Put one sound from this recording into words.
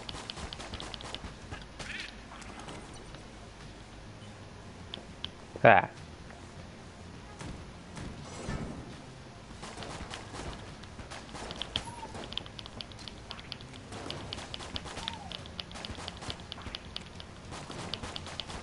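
Small gunshots fire in rapid bursts.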